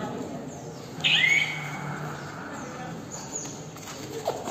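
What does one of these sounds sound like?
Sneakers squeak sharply on a rubber mat.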